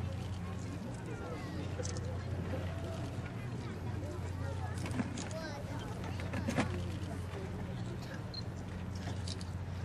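A crowd of people chatters outdoors in the open air.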